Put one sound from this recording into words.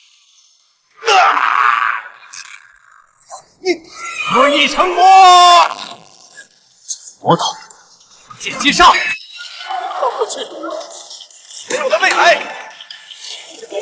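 A young man speaks tensely at close range.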